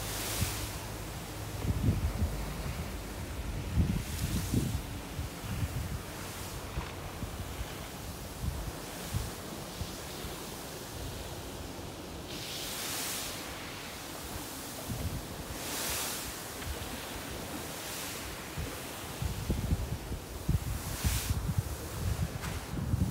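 Wind gusts and rumbles loudly outdoors.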